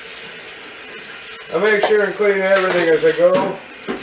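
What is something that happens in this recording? Water runs into a sink.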